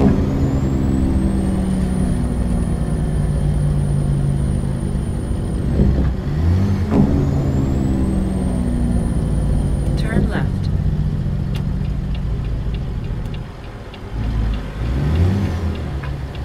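A heavy truck engine rumbles steadily, rising in pitch and dropping as it shifts through gears.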